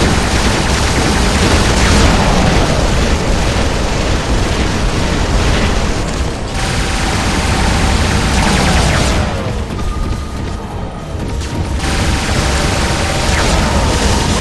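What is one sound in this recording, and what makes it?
Heavy guns fire in rapid bursts with loud explosions.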